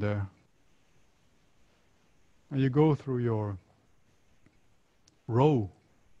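A middle-aged man speaks with animation into a close microphone, in short bursts.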